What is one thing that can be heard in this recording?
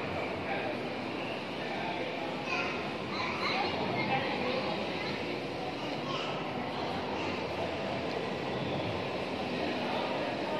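Visitors murmur and talk quietly in a large echoing hall.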